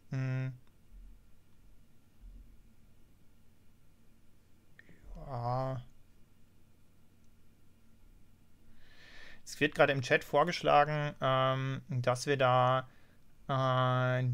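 A man talks calmly and closely into a microphone, with pauses.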